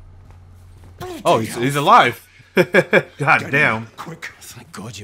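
A man shouts in a gruff voice.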